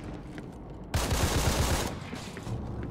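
A blaster fires a rapid burst of electronic shots.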